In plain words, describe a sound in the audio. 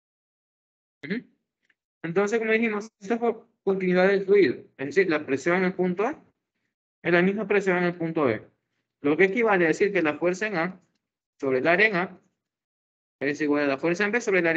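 A young man explains calmly through an online call microphone.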